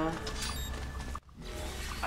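Water splashes under running feet.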